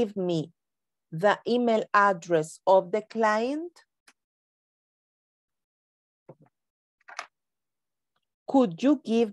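An older woman speaks with animation over an online call.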